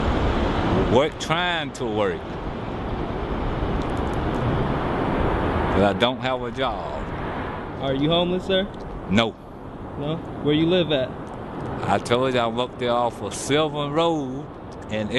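An older man speaks calmly and close by.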